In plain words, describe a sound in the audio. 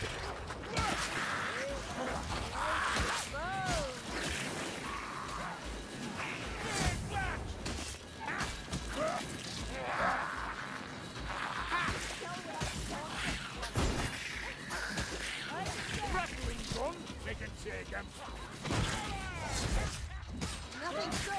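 Blades hack and slash into flesh with wet thuds.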